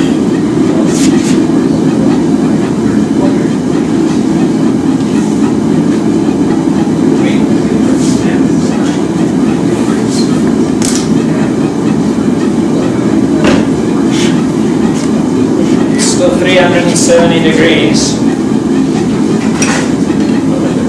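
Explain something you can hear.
A metal rod clinks and scrapes against the forge.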